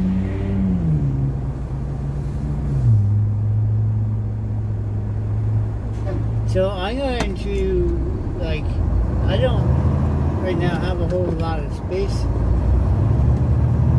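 Cars and trucks drive past close by.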